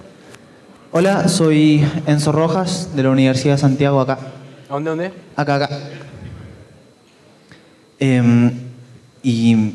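A man speaks through a microphone in a large echoing hall.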